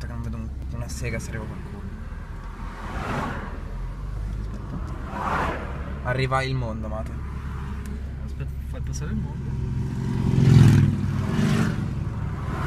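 A car engine hums steadily while driving on a highway.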